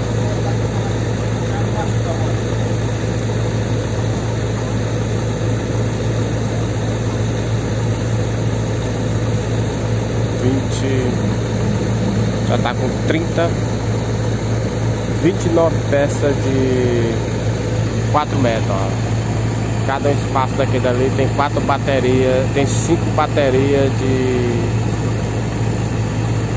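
A drilling rig's engine runs with a steady low drone.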